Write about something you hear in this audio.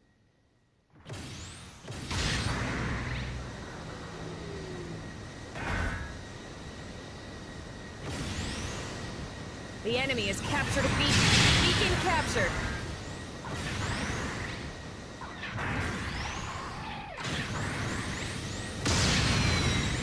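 Thrusters roar as a robot boosts through space.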